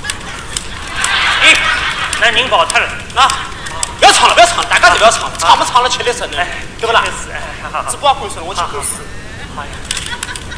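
A young man speaks with animation into a microphone on a stage.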